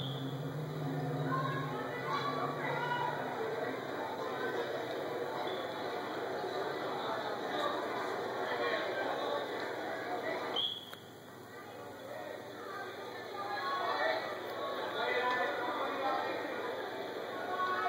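A crowd in a large echoing gym chatters and cheers.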